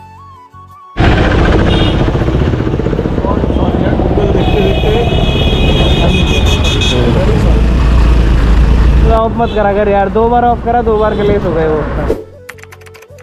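A scooter engine hums while riding through traffic.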